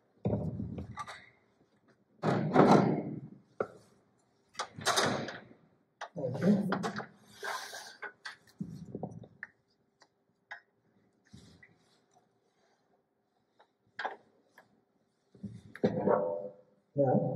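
Tools and wooden parts clatter and knock against metal.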